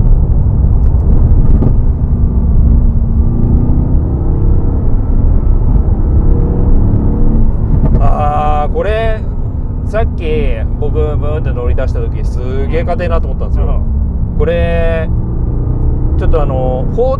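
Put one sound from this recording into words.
A car engine roars with a deep, steady rumble inside the cabin.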